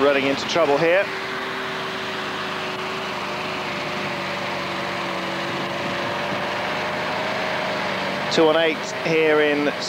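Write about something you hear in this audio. A truck engine strains and rumbles steadily as the truck climbs slowly up a rough slope.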